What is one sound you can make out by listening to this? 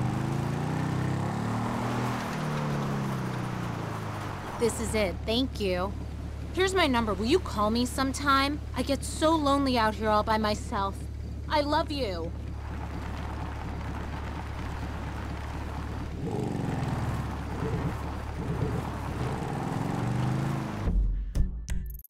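A motorcycle engine revs and rumbles.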